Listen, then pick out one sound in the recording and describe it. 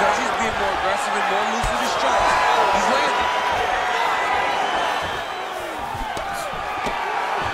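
A large crowd cheers and whistles in a big arena.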